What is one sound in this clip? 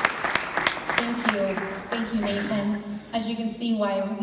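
A woman speaks into a microphone, heard through loudspeakers in a large hall.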